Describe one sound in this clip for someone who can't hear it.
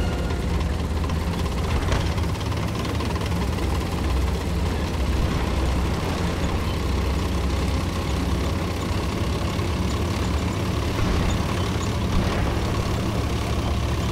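Tank tracks clatter and squeak over cobblestones.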